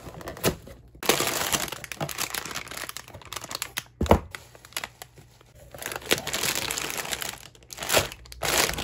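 Plastic packets crinkle and rustle as they are handled.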